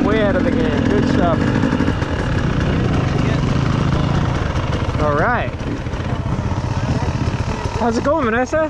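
Dirt bike engines rumble and idle close by.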